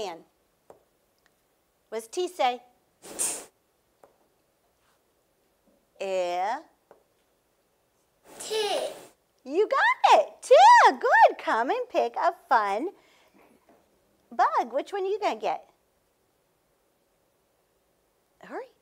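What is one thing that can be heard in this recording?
A woman speaks clearly and slowly, as if teaching, close to a microphone.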